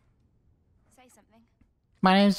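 A young woman speaks in a strained voice.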